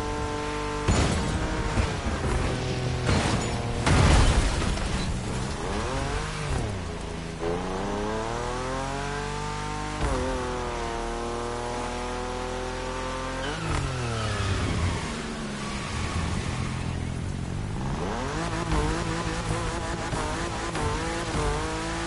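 A car engine roars, revving up and down through the gears.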